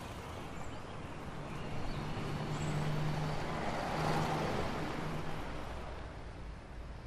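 A bus drives past close by with a rumbling engine.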